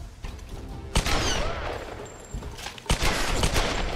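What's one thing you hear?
Pistol shots ring out sharply.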